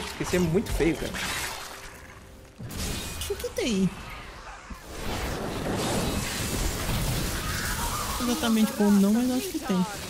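Magic blasts crackle and boom in rapid bursts.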